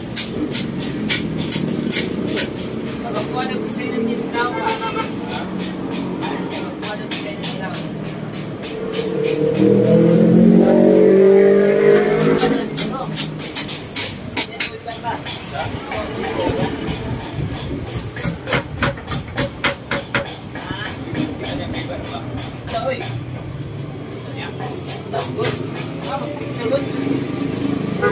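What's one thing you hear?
Rattan strips creak and click as they are woven and trimmed.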